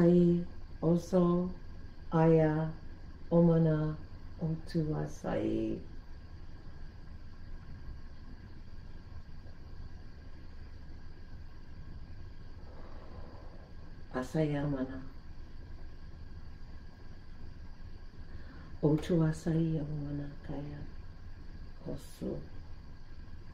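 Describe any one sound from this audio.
An elderly woman speaks calmly and slowly, close by, in short phrases with long pauses.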